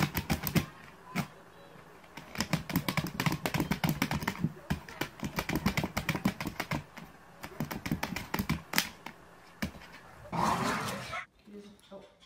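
A dog's claws scratch and rattle against a plastic box.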